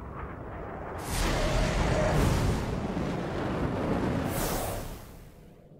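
A blast of energy roars loudly.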